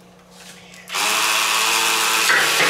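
A battery-powered toy reciprocating saw buzzes.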